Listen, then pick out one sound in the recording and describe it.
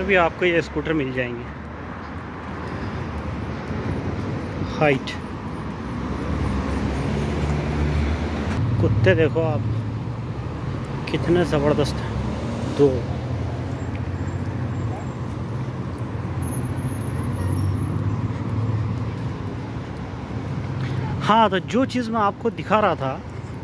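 Traffic hums steadily on a nearby road.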